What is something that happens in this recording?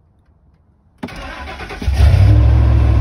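A truck engine cranks and starts.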